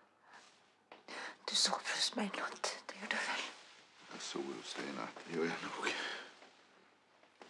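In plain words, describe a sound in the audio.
A woman speaks softly and breathlessly close by.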